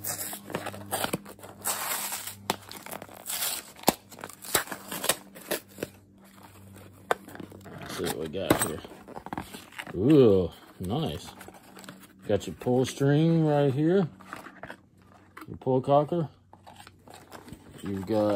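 Cardboard rustles and scrapes as a small box is handled and opened.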